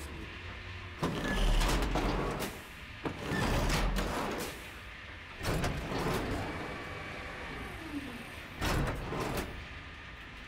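Heavy machinery clanks and rumbles.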